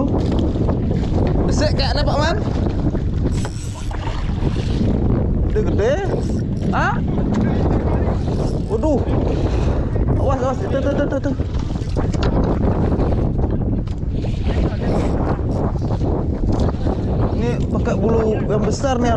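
Waves slosh and splash against a small boat.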